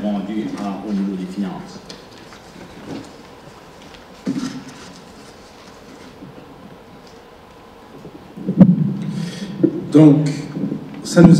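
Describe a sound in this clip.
A man speaks calmly into a microphone over loudspeakers in a large echoing hall.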